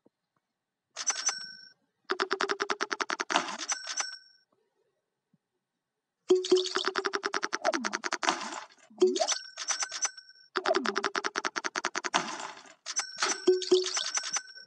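Quick ticking game effects rattle in rapid bursts as steps stack up.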